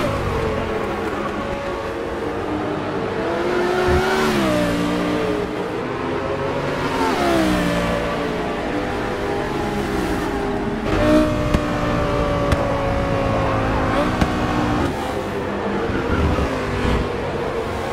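Racing car engines roar loudly, their pitch rising and dropping as the cars shift gears.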